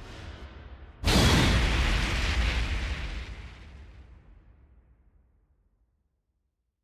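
A loud whooshing boom bursts and slowly fades away.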